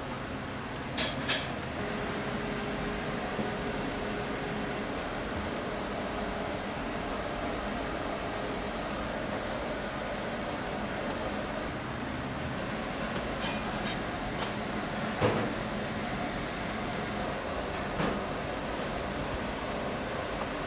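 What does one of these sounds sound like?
Slabs of raw meat are set down on a metal wire rack with soft knocks and clinks.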